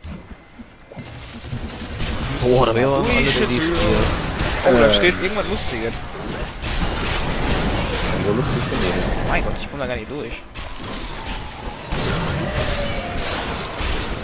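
Magical blasts crackle and whoosh during a fight.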